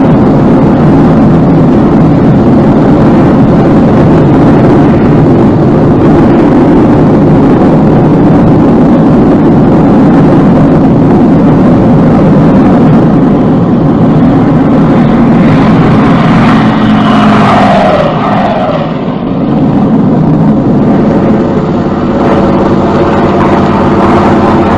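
Aircraft engines drone loudly and steadily.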